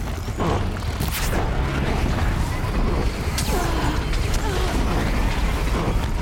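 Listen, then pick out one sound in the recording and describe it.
Mechanical beasts growl and screech nearby.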